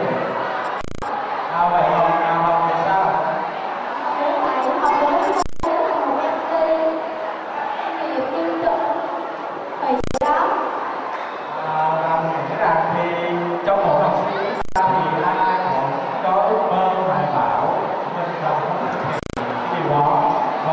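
A young man speaks into a microphone over loudspeakers, with animation, in a large echoing hall.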